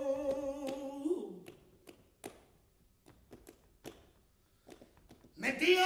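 A man claps his hands in a sharp rhythm.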